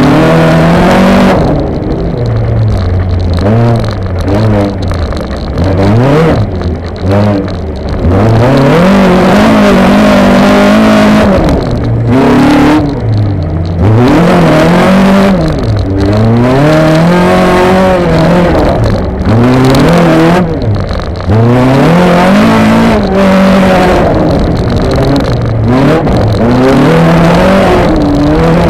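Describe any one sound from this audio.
An autocross car's engine revs hard and drops between gear changes, heard from inside a stripped cabin.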